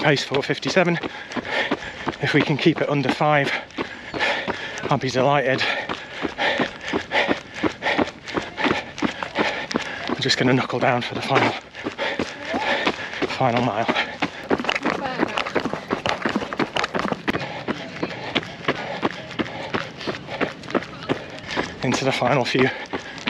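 A man talks breathlessly and close by while running.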